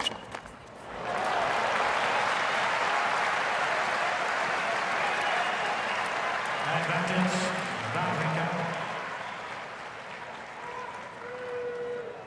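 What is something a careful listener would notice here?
A large crowd cheers and applauds loudly.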